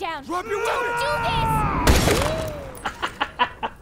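A man shouts in distress.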